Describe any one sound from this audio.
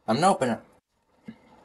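A young man speaks loudly and close to a microphone.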